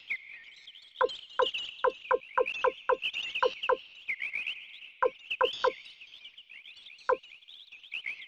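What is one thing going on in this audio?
Short electronic blips tick as a menu cursor moves.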